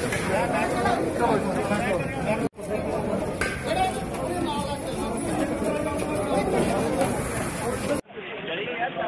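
A crowd of men shout and talk loudly at close range.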